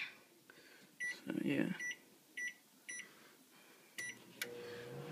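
A microwave oven keypad beeps.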